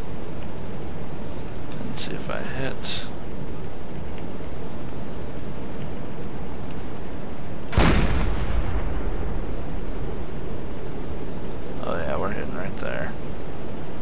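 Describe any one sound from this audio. Sea water rushes and washes steadily.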